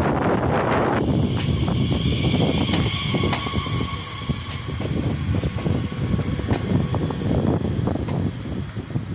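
Train brakes squeal as a passenger train slows.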